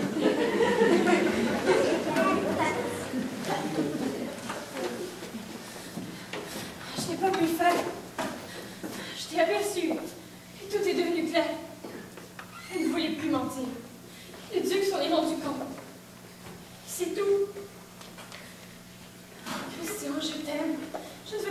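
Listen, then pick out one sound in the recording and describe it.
A young man speaks with feeling in a large echoing hall.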